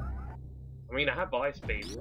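A blaster fires a short zapping shot.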